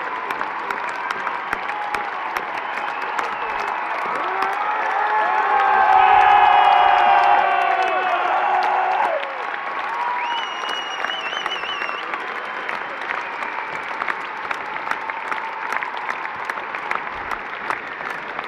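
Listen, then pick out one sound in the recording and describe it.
A large crowd cheers and roars in a huge echoing arena.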